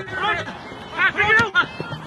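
A football thuds off a boot.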